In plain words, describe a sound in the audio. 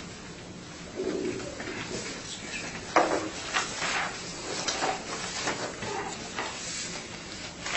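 An adult speaks calmly, heard through a distant room microphone.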